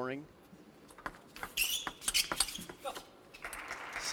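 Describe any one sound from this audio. A table tennis ball clicks back and forth on paddles and the table.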